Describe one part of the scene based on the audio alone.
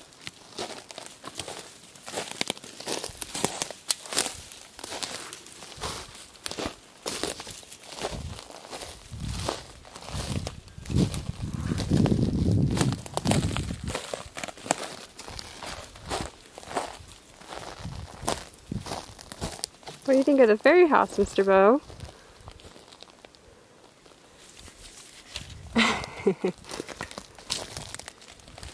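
A small animal hops over dry pine needles with soft rustling.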